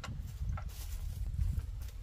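Footsteps crunch on dry soil.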